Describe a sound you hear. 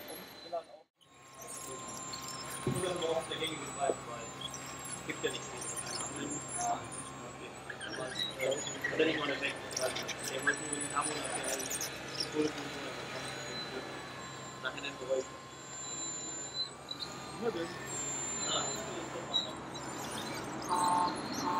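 A small electric motor whines steadily as a model bulldozer drives.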